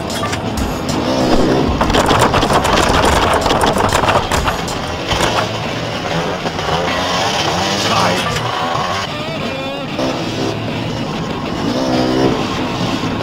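A motorbike engine revs and whines.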